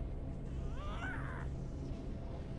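A game's victory chime sweeps upward with a shimmering whoosh.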